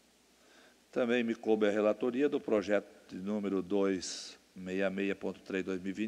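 A man speaks calmly into a microphone in a room.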